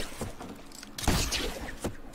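A grappling line whirs and zips.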